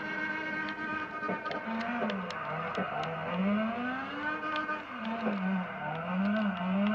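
A racing car engine revs up and down.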